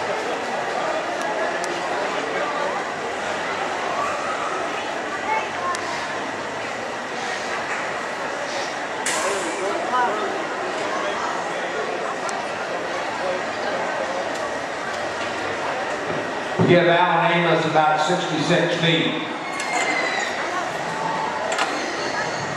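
A crowd chatters and murmurs outdoors.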